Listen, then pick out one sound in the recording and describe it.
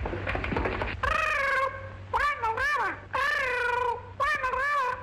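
A parrot squawks and chatters loudly.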